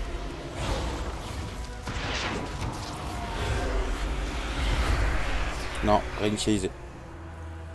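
Blades clash in a fight.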